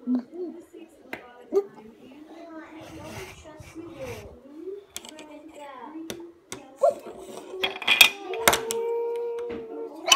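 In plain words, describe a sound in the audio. Plastic toy figures knock and clatter against a wooden table.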